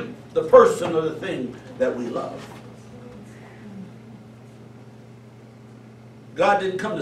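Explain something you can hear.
A middle-aged man preaches with animation into a microphone, in a reverberant hall.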